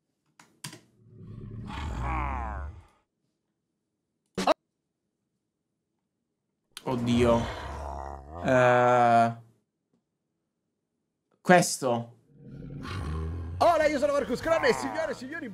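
A young man talks into a close microphone, casually and with pauses.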